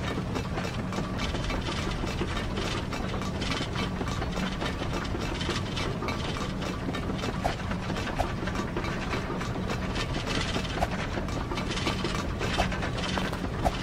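Quick footsteps patter as a game character runs.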